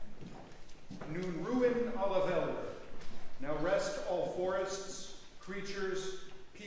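An elderly man speaks slowly through a microphone in an echoing hall.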